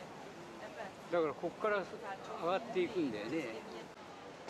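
Voices of men and women talk nearby on an open boat.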